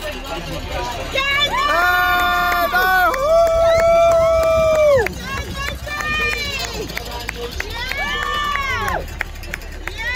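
Spectators clap their hands outdoors.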